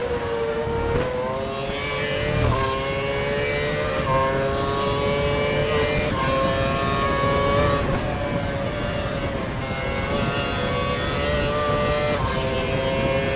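Gear shifts click sharply as the engine note jumps.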